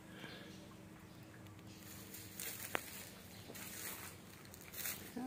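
Leaves rustle in a light breeze outdoors.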